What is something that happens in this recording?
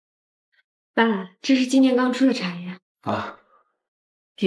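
A young woman speaks cheerfully.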